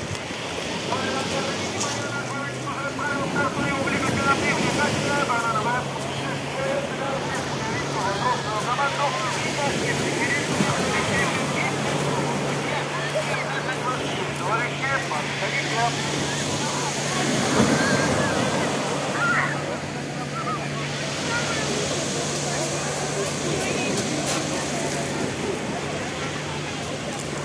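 Small waves break and wash over pebbles.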